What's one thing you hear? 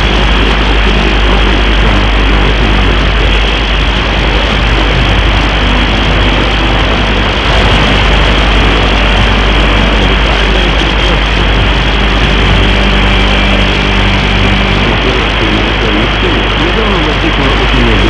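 Loud static hisses steadily from a radio receiver.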